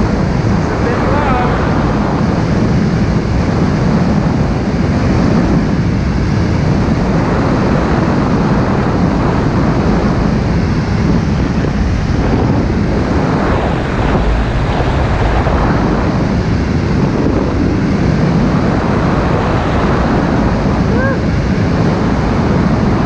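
Strong wind roars steadily past the microphone.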